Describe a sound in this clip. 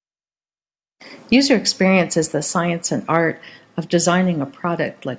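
A woman speaks calmly, heard through an online call.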